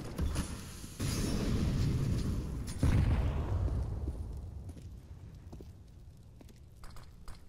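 A smoke grenade bursts with a loud hiss.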